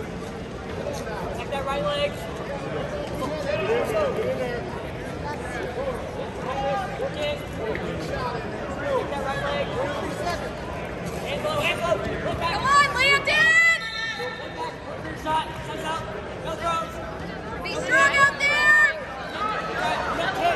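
A crowd murmurs and chatters throughout a large echoing arena.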